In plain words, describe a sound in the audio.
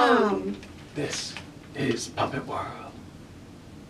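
A young man talks in short bursts.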